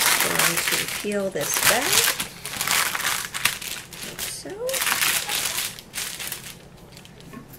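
Parchment paper crinkles and rustles close by.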